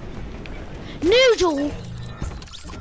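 A game's reward chime rings out with a quick rising and falling sweep.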